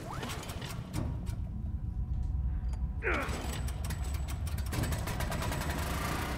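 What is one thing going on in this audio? A generator engine sputters and starts running.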